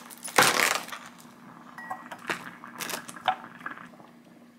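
Chopsticks clink against a glass bowl.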